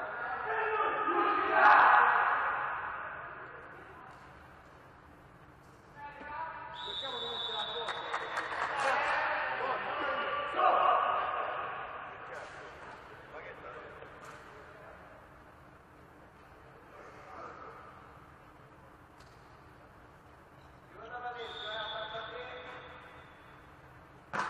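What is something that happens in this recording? Men shout and call out in a large echoing hall.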